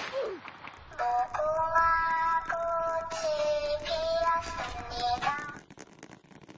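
A mechanical doll sings a short, high tune.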